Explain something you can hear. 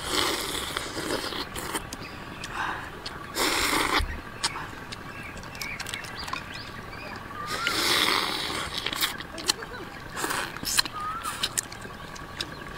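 A woman slurps and chews loudly close by.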